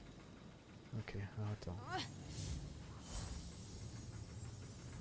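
A magical whoosh sweeps past.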